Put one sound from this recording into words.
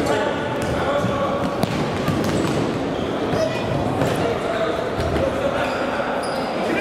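Young men shout across a large echoing hall.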